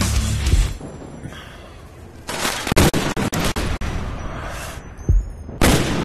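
A rifle fires a loud, booming shot.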